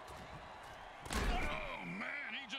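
Armoured players crash together with a heavy thud.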